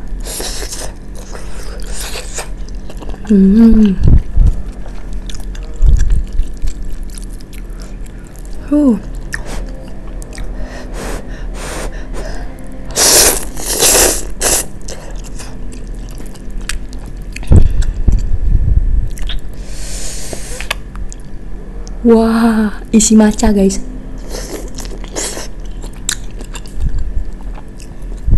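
A young woman chews food and smacks her lips close by.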